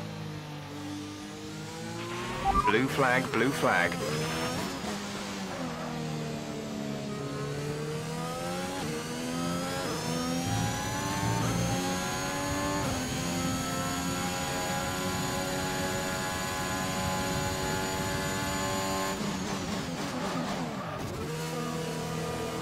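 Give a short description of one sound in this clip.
A racing car engine revs high, rising and falling through the gears.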